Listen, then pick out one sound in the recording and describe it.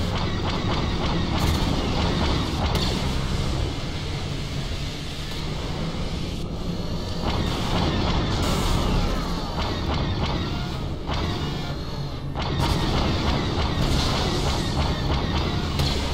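A heavy engine rumbles steadily.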